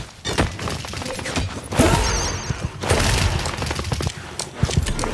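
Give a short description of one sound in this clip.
A laser gun fires in rapid zapping bursts.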